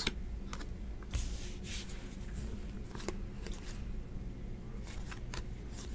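Trading cards rustle and flick as they are sorted by hand.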